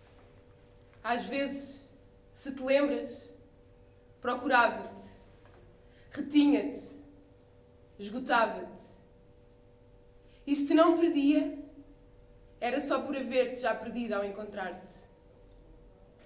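A young woman speaks in short, earnest phrases nearby.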